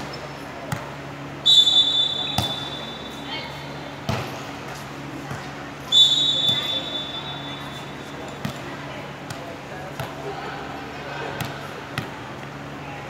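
A volleyball is hit and thuds sharply in a large echoing hall.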